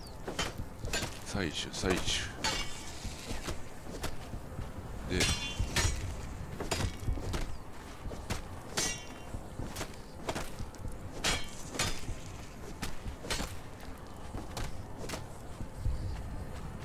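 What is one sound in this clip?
Footsteps thud and crunch on rough ground at a steady walking pace.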